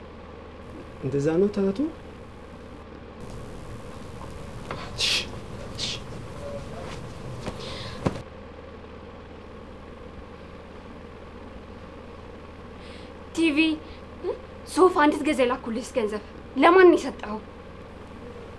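A young woman speaks sharply and with feeling, close by.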